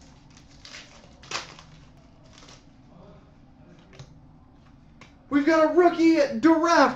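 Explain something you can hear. A plastic pack wrapper crinkles as it is cut and torn open.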